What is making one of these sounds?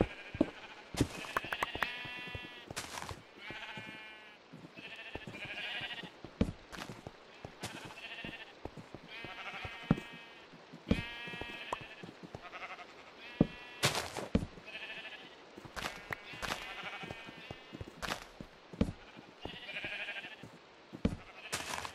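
Footsteps crunch on stone.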